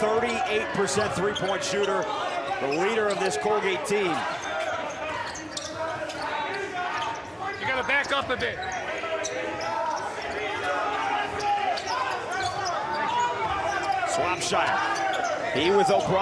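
A basketball bounces on a hardwood floor.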